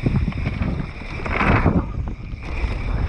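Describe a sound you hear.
A bicycle rattles over a wooden ramp.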